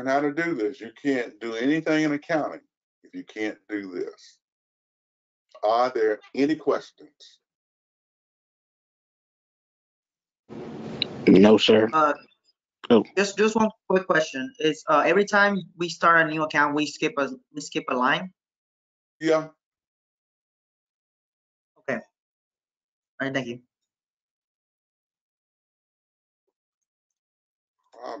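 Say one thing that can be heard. A man speaks calmly through an online call, pausing often.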